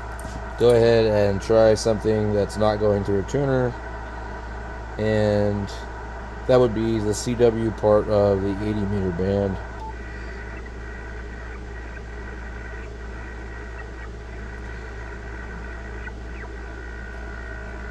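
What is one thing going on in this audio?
Buttons on a radio click under a finger.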